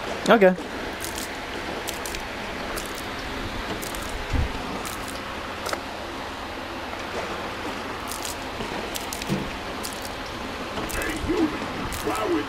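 Liquid pours and gurgles from a can.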